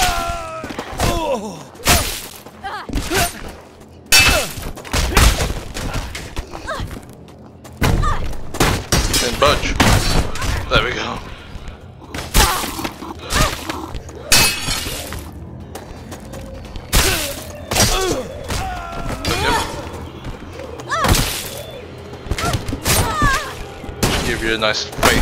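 Blades clash and strike in quick, sharp hits.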